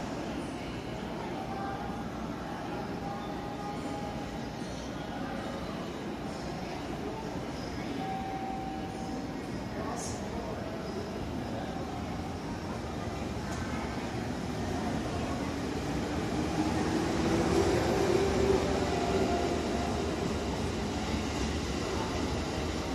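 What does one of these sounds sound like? A train rumbles slowly into an echoing station and grows louder as it passes close by.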